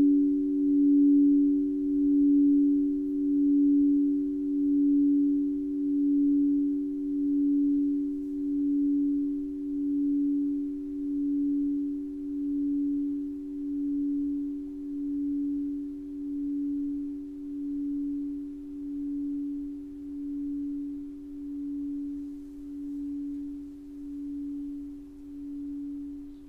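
A crystal singing bowl rings with a steady, pulsing hum that slowly fades.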